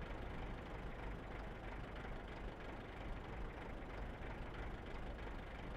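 A tank engine rumbles steadily as the tank drives across open ground.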